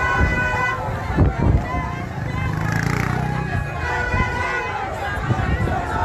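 Motorcycle engines idle and rev close by.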